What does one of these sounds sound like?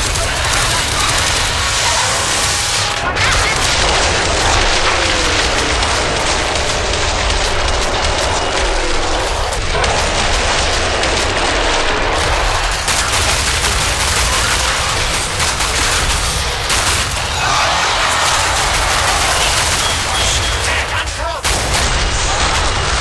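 Monsters shriek and growl as they attack.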